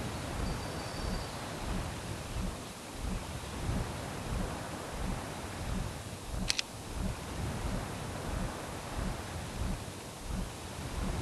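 Game music plays with a steady, low pulsing beat.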